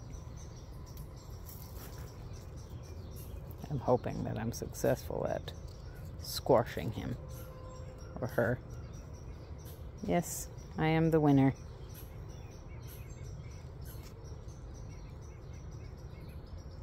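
Fingers rustle a long plant leaf.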